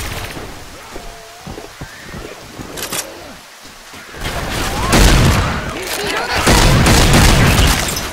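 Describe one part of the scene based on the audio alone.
Zombies snarl and growl nearby.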